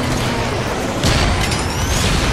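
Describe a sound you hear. A rocket launcher fires with a whoosh.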